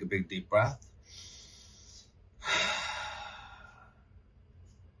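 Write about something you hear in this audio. A man breathes out audibly.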